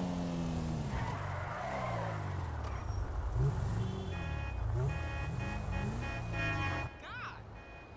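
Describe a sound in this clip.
A sports car engine revs up and down loudly.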